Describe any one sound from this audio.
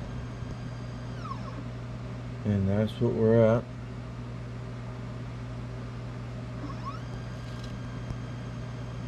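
A printer motor hums steadily as it slowly lifts its build plate.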